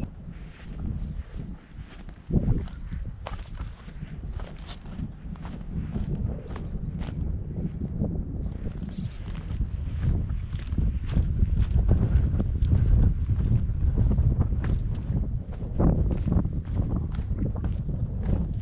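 Wind blusters against a microphone outdoors.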